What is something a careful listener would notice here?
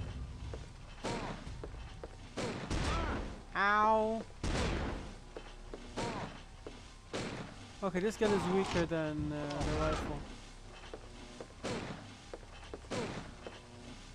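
Gunshots ring out one at a time, with a short echo.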